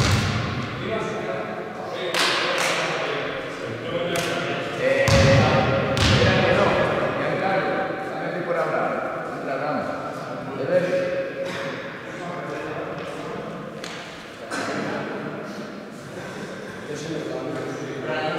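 Basketballs bounce on a wooden floor in a large echoing hall.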